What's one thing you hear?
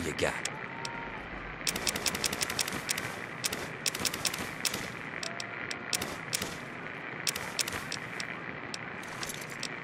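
Short sharp clicks tap in quick bursts.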